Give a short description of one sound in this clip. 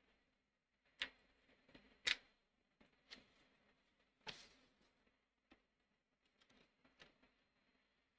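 Small objects knock lightly on a table.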